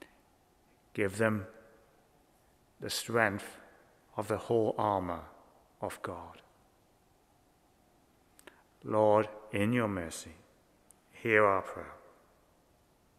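An older man speaks slowly and calmly into a microphone, in a room with a slight echo.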